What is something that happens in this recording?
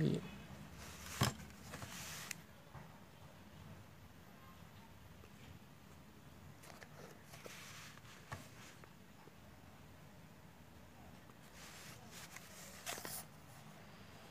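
A sheet of paper rustles as it is moved.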